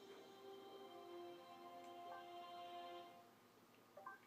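A short electronic game tune plays, then stops.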